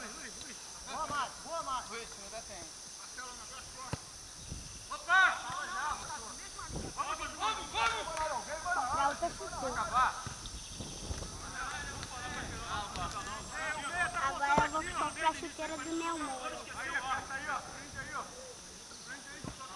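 Young men shout and call to each other from a distance outdoors.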